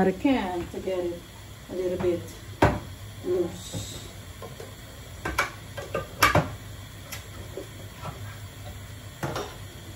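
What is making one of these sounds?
Water bubbles at a boil in a pot.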